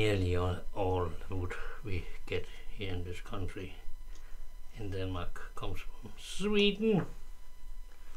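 An elderly man talks calmly close by.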